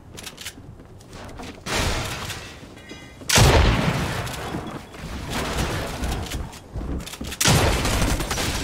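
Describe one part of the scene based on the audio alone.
Building pieces snap into place with sharp thuds.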